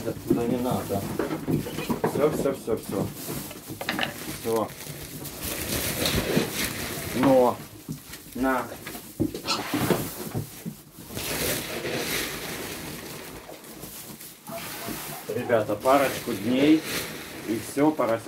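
Pigs grunt and squeal close by.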